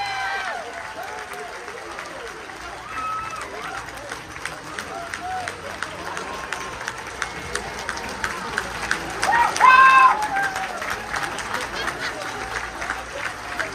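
An audience claps steadily in a large hall.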